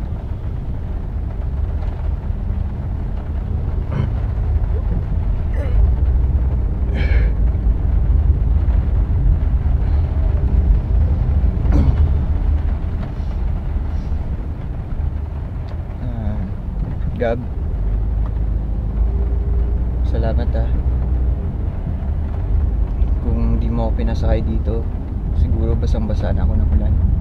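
A car engine hums with a low road rumble.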